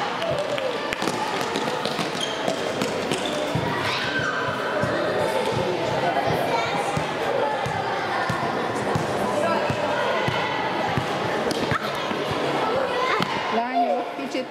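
Sneakers squeak and thud on a hard floor in a large echoing hall.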